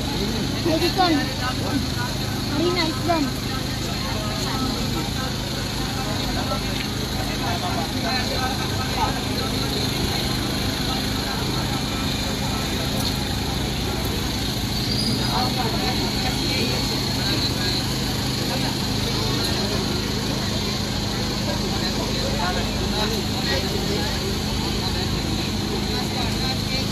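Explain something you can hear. A crowd of men and women chatter nearby outdoors.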